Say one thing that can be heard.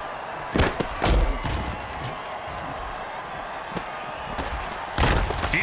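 Padded players collide with heavy thuds.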